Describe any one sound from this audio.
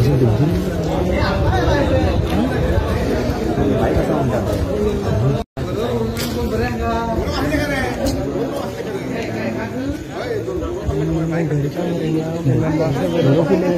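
A crowd of people talk over one another outdoors.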